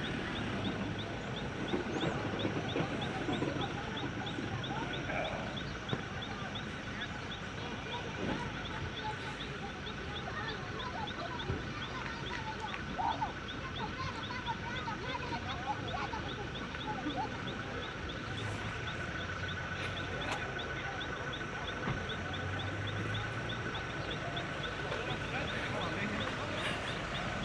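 A crowd of people shout and chatter at a distance outdoors.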